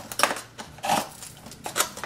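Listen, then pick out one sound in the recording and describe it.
A screwdriver pries and clicks at a frame.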